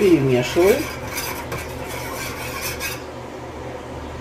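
A metal pot clinks against a stove grate.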